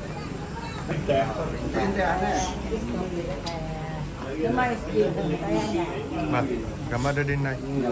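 An elderly woman talks cheerfully close by.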